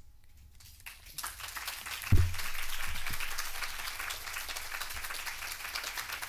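Paper rustles close to a microphone.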